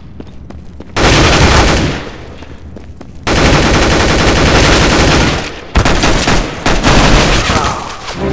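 Rifle shots ring out in loud rapid bursts.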